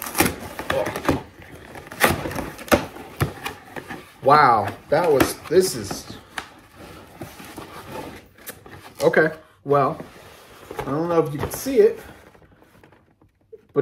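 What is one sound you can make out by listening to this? Cardboard and paper tear and crinkle.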